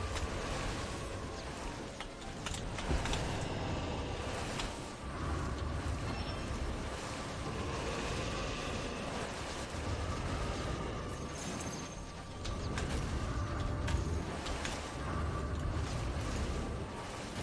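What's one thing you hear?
Magical blasts whoosh and crackle in bursts.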